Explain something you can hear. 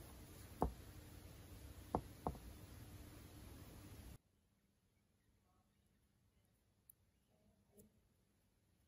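A small plastic connector clicks sharply as it is pressed into place.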